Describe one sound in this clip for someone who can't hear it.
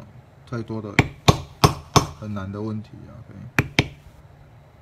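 A mallet thumps sharply on leather several times.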